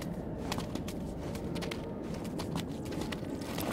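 Tall plants rustle and swish as someone pushes through them.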